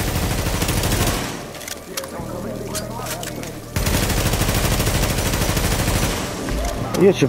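Automatic rifles fire in rapid bursts.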